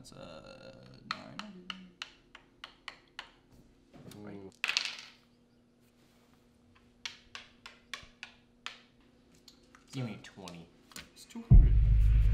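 Game pieces tap and click on a board.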